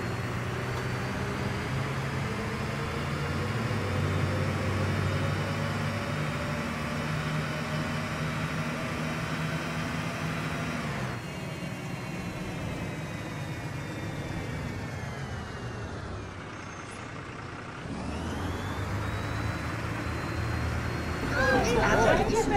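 A diesel city bus engine drones and whines as the bus drives.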